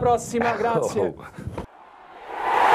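A middle-aged man speaks with animation into a microphone, close by.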